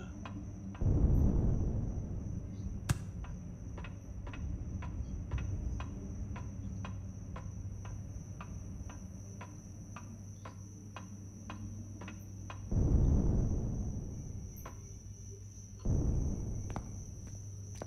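Footsteps tread steadily at an even pace.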